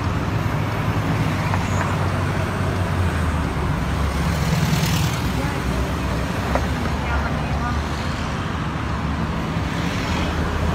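Traffic rumbles past close by on a busy road.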